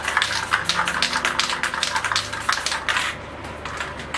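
A spray can hisses in short, quick bursts.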